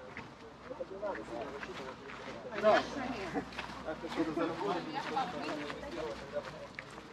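Men and women chat nearby as they walk past.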